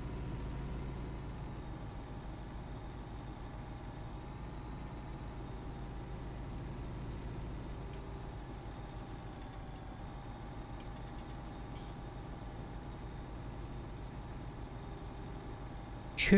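Tyres rumble over a ploughed field.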